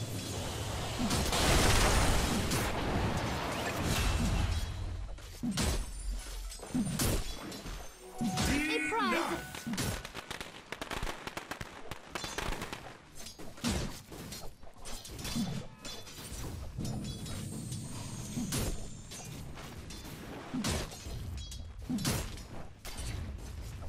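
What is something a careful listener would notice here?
Weapons strike and magic blasts crackle in a fierce fight.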